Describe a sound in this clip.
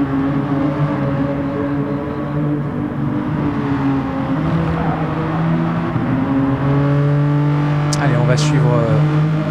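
A racing car engine roars steadily, shifting pitch as it changes gear.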